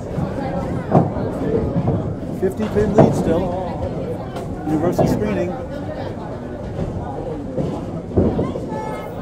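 Bowling pins crash loudly.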